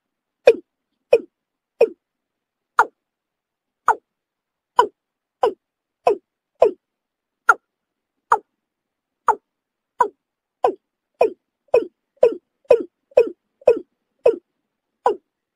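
A bird gives short, sharp calls again and again, faster toward the end.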